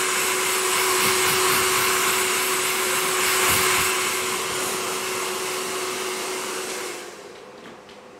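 A hair dryer blows loudly close by, then switches off.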